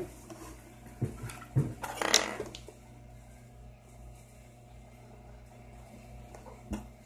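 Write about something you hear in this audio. Plastic parts knock and tap on a table.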